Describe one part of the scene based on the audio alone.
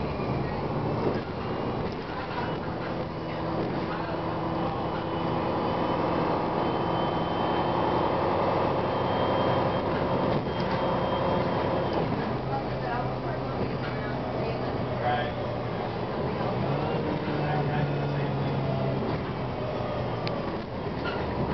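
A bus rattles and creaks as it rolls over the road.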